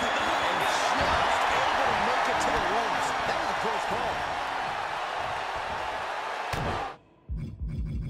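A large crowd roars and cheers in an arena.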